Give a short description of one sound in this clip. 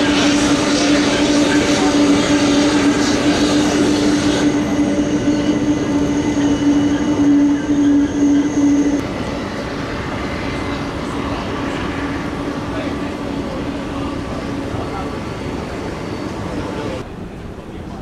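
A jet airliner's engines roar as it taxis close by.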